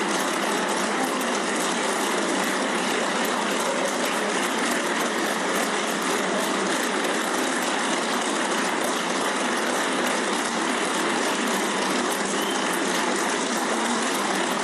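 A large crowd applauds steadily in a big echoing hall.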